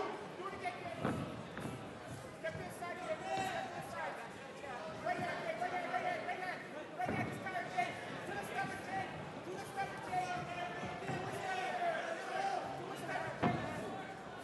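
Gloved punches land with dull thumps.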